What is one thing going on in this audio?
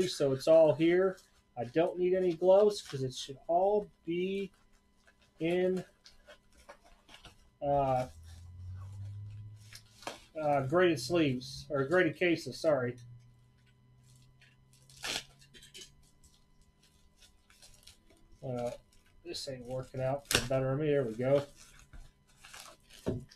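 Padded paper envelopes rustle and crinkle as they are handled.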